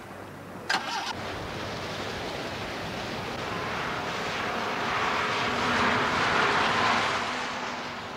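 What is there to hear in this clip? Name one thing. Sea waves break on a rocky shore.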